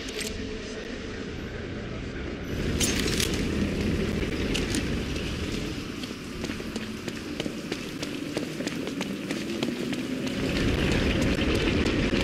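A large machine rumbles with a deep, steady hum.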